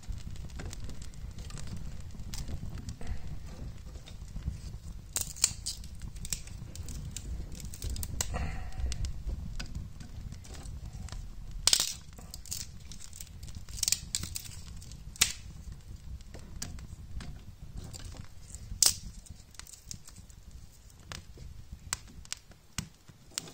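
Flames roar softly and then die down.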